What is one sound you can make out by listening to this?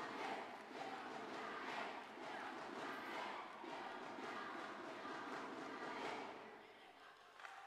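A large crowd cheers and shouts loudly, then quiets down.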